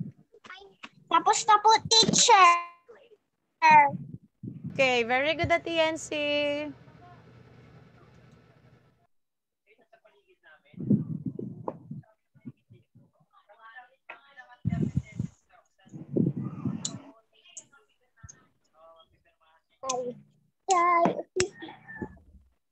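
Children speak loudly and with animation over an online call.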